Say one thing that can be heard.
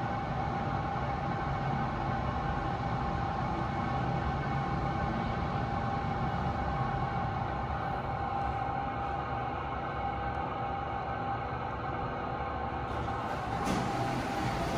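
An elevator hums steadily as it travels.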